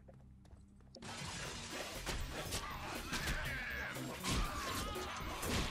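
Swords slash and clang in a fast fight.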